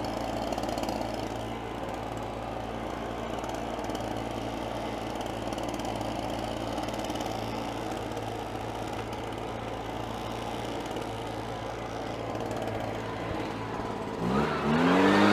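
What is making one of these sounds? A small engine idles with a low hum.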